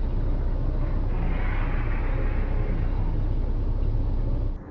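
A car passes by close on a wet street.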